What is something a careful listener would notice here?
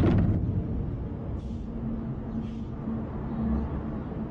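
A door swings shut with a soft thud.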